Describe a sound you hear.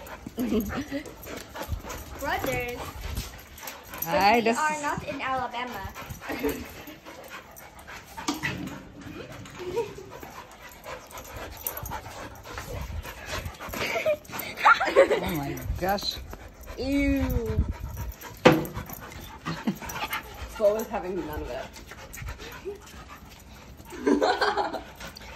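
Two dogs growl and yip playfully close by.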